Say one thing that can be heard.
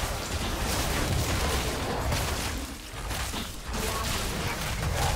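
Video game combat effects whoosh and clash.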